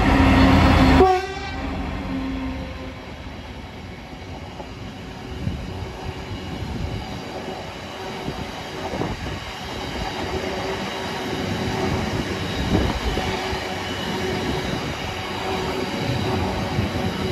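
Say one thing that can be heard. Heavy freight wagons rumble and clatter steadily over the rails.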